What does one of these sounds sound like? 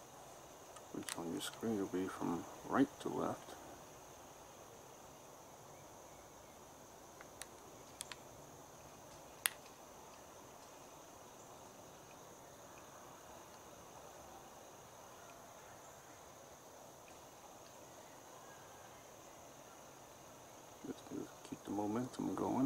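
A man talks briefly nearby.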